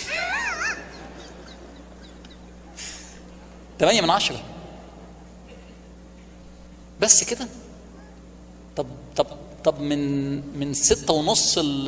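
A man speaks with animation through a microphone and loudspeakers in a large hall, pausing between phrases.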